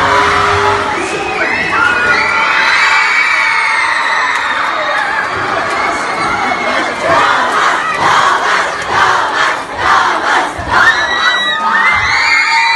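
Young women shriek loudly close by.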